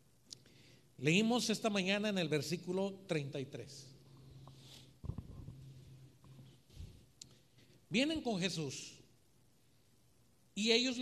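A middle-aged man speaks with feeling into a microphone, heard through a loudspeaker in an echoing room.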